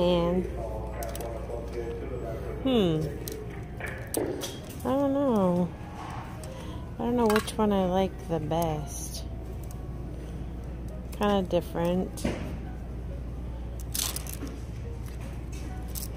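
Clothes hangers scrape and click along a metal rail.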